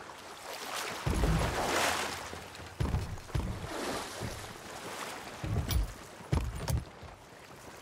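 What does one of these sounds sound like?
Footsteps thump on a wooden deck.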